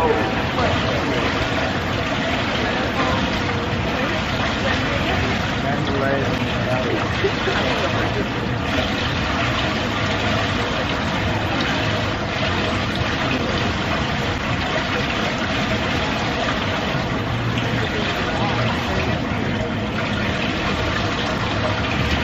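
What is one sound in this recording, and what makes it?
Water laps gently against a pool edge.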